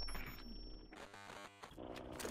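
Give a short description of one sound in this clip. Harsh electronic static crackles and buzzes.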